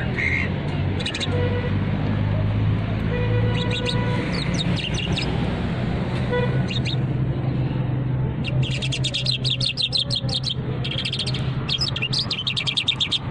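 A small caged songbird sings in rapid chirping trills.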